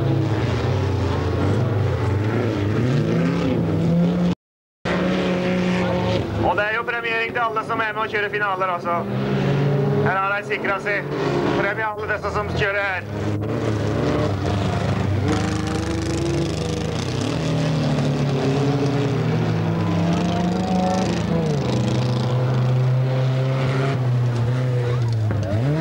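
Tyres skid on loose gravel.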